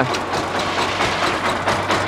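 Rocks and gravel clatter as they are dumped into a truck bed.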